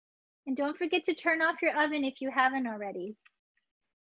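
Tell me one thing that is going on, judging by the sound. A young woman speaks with animation through an online call.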